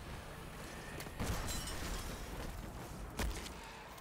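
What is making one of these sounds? A crystal shatters with a loud burst.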